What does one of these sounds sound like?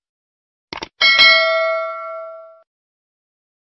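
A bell chimes brightly and rings out.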